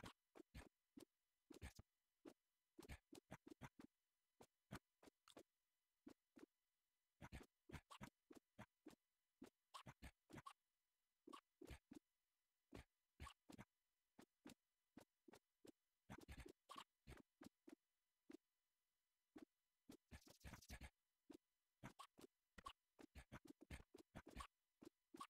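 Short electronic game sound effects pop and blip in quick bursts.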